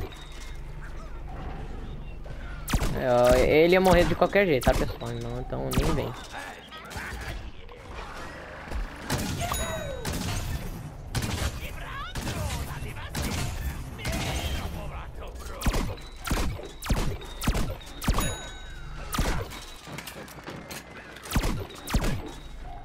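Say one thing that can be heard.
Cartoon laser and cannon shots fire in rapid bursts.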